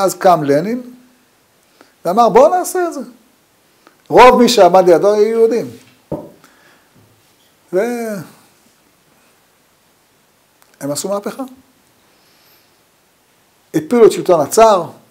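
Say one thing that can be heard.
An elderly man speaks calmly in short phrases with pauses, close by.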